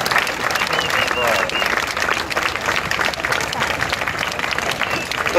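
A crowd claps outdoors.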